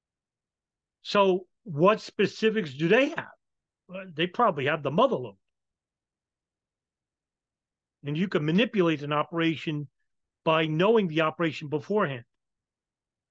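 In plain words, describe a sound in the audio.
A middle-aged man speaks with animation into a microphone, as over an online call.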